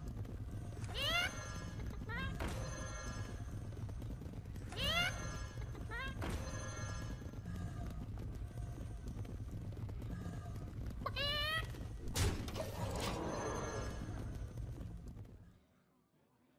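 Game sound effects chime and whoosh as cards are played.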